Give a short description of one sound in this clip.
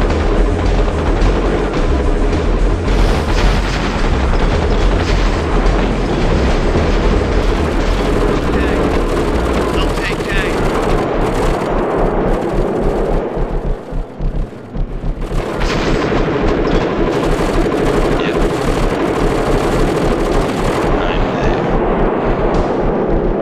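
Video game tanks fire cannons and shells explode in a battle.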